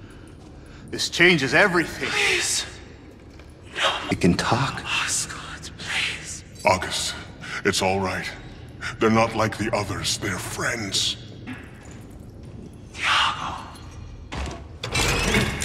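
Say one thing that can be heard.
A man speaks pleadingly and with emotion, close by.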